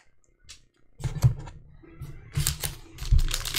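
Hands shuffle and handle foil trading card packs.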